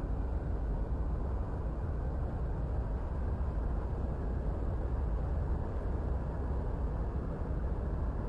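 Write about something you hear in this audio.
A jet engine rumbles steadily as a plane rolls along a runway.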